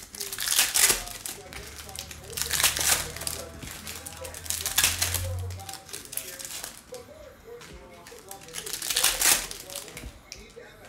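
Plastic wrapping crinkles and rustles close by in bursts.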